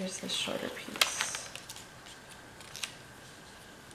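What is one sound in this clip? Paper rustles and crinkles as sticker sheets are handled.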